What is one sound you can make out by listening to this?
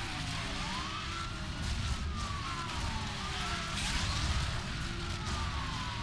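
Tyres skid and scrape on a rough road.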